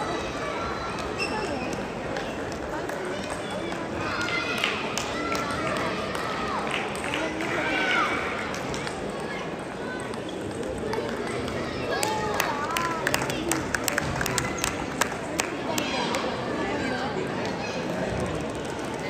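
Many people talk in the background of a large echoing hall.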